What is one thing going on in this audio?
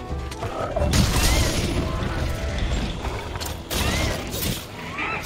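A weapon clangs and slashes against scales.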